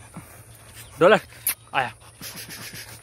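A dog whines.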